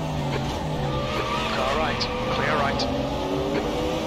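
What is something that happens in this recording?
Tyres squeal briefly through a corner.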